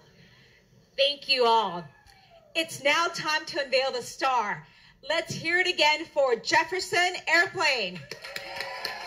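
A woman speaks with feeling into a microphone, heard through a loudspeaker.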